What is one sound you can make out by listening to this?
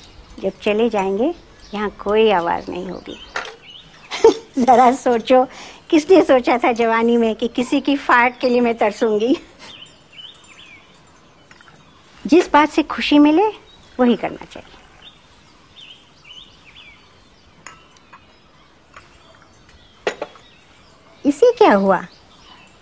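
An elderly woman speaks calmly and warmly, close by.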